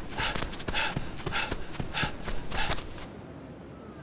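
Footsteps run on a dirt street.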